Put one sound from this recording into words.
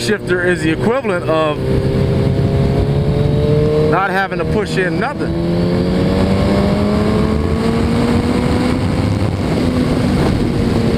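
A motorcycle engine hums steadily and its pitch slowly rises as it speeds up.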